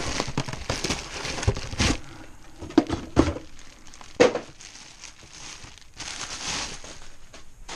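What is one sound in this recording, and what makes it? Plastic bubble wrap crinkles and rustles in hands close by.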